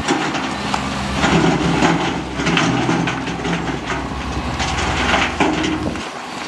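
Soil and stones scrape and clatter in an excavator's bucket.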